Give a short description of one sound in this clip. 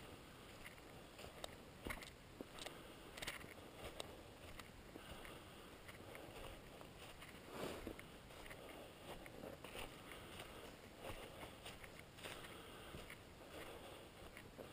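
Footsteps crunch through dry fallen leaves at a walking pace.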